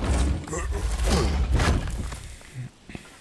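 A heavy chest lid slams shut with a loud thud.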